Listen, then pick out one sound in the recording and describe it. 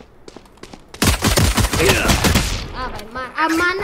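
Pistol shots crack in quick succession.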